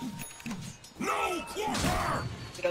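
A young man speaks with animation into a nearby microphone.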